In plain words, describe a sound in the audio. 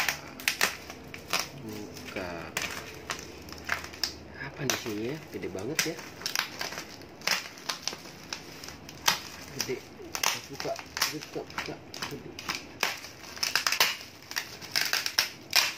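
A box cutter slices through plastic wrap with sharp scraping sounds.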